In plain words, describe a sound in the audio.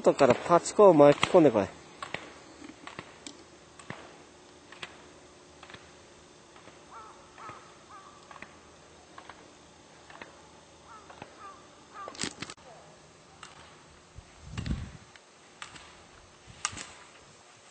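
Slalom gate poles clack as a skier knocks past them.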